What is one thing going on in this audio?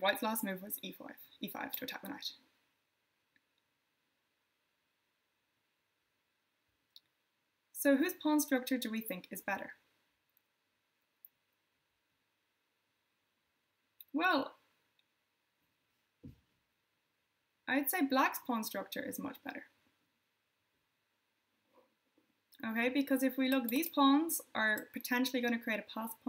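A young woman speaks calmly into a close microphone, pausing between phrases.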